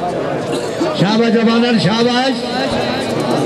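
A man calls out loudly over the crowd.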